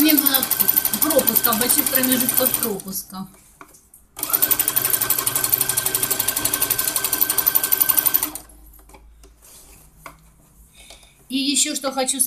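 A sewing machine runs fast with a rapid, steady whirr and clatter, stopping and starting in bursts.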